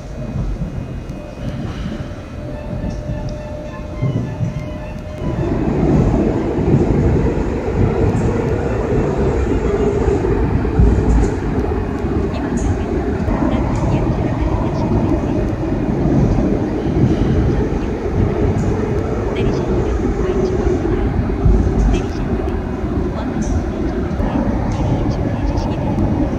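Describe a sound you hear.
A train rumbles along the tracks and roars louder as it enters a tunnel.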